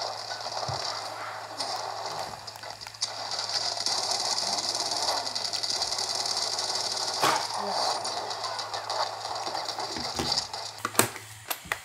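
Gunfire and game sound effects play from a small device speaker.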